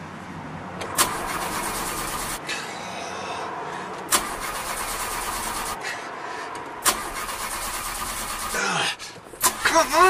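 A car engine cranks and sputters, trying to start.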